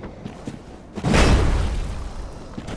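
A heavy body rolls with a whoosh.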